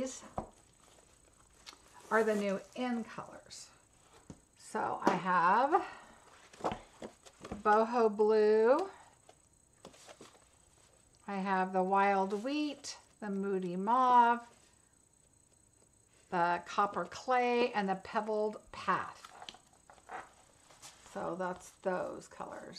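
Sheets of card stock rustle and slide against each other as they are handled.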